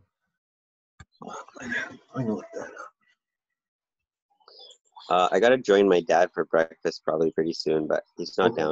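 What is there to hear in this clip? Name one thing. An older man talks with animation over an online call.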